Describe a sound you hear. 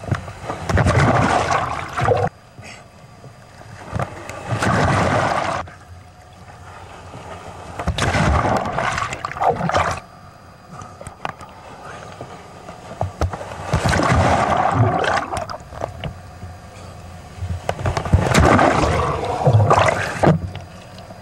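Large waves crash and roar in loud surges.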